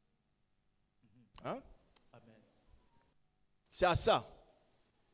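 A man speaks loudly and with animation into a microphone, in short bursts with pauses.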